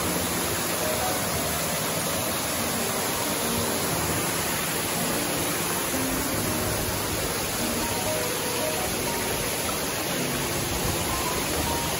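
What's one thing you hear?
A stream rushes and splashes steadily over rocks close by.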